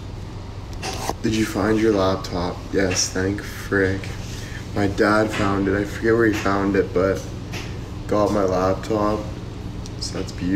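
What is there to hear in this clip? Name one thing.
A young man talks calmly into a phone microphone, close by.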